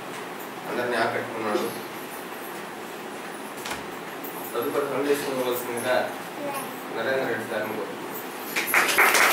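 A man speaks to a room in a loud, echoing voice.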